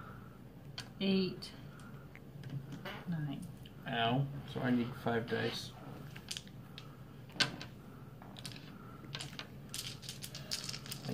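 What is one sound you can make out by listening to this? Dice rattle and click in a hand.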